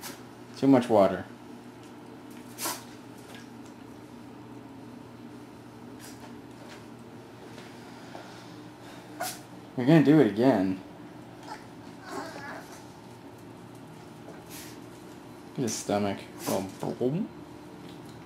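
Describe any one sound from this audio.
A puppy barks in short, high yaps.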